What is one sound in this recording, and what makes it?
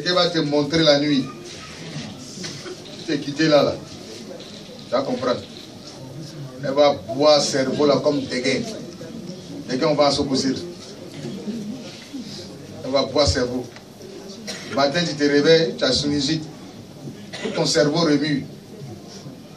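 A man speaks with animation through a microphone in an echoing room.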